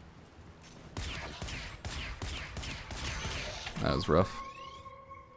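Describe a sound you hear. A weapon fires with a sharp zapping blast.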